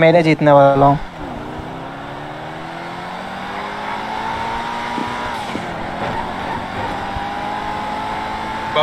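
A car engine revs hard and climbs in pitch as the car speeds up.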